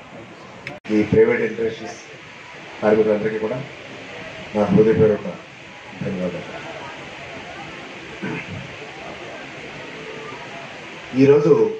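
A middle-aged man speaks into a microphone through a loudspeaker, in bursts with pauses.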